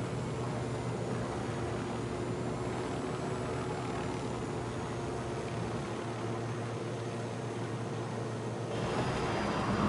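Helicopter rotor blades thump steadily overhead.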